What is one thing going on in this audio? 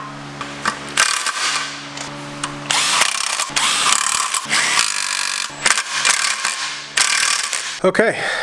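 An impact wrench whirs and rattles in short bursts.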